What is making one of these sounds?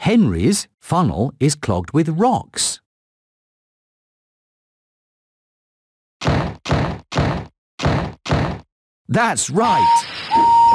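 A man speaks cheerfully in a character voice.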